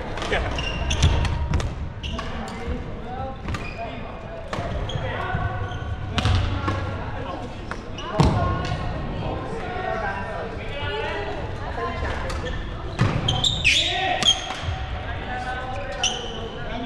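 Voices of men chatter and call out across a large echoing hall.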